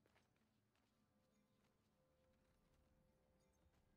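A treasure chest creaks open.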